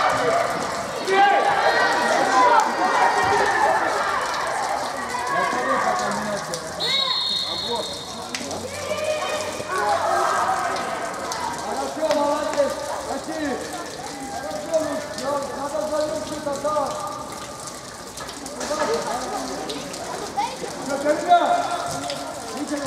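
Young players shout across a large echoing hall.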